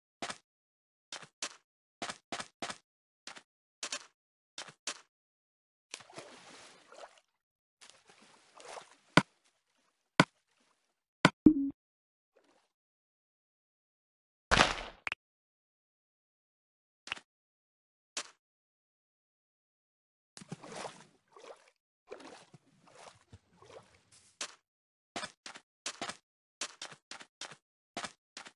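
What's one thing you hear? Footsteps crunch on sand in short bursts.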